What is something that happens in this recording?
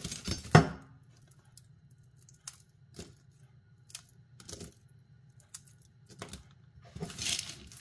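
Crumbly nut brittle crunches and crumbles between fingers.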